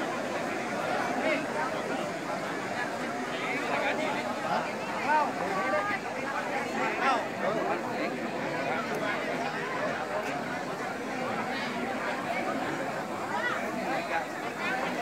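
A large crowd of men and women chatters and calls out nearby, outdoors.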